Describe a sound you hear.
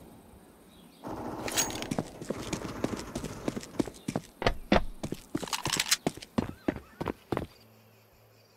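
Footsteps tap quickly on hard stone.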